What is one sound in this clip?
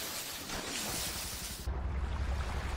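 Water rushes and splashes in a boat's wake.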